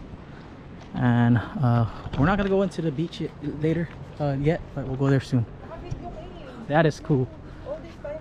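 A man talks up close, calmly.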